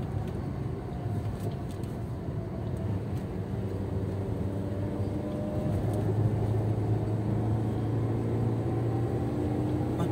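Tyres roll on a smooth road with a low rumble.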